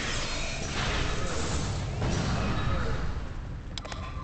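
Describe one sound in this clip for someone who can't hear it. Energy weapons blast and crackle in a noisy fight.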